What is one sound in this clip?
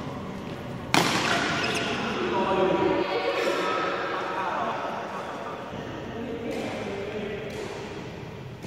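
A racket sharply strikes a shuttlecock.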